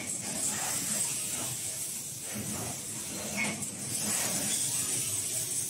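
A robotic arm whirs as it moves.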